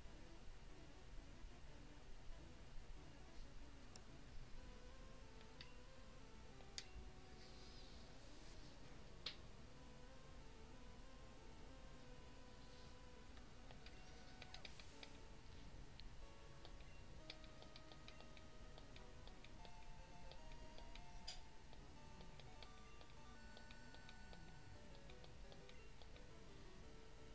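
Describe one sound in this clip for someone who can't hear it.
Bleepy electronic game music plays steadily.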